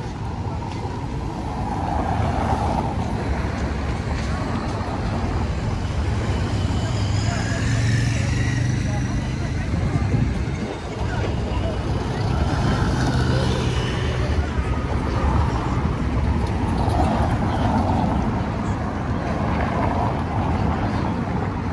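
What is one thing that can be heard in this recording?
Traffic rumbles past on a busy road.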